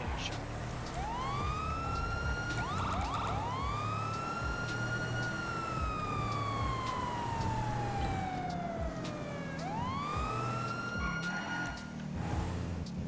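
A police siren wails and yelps, rising and falling.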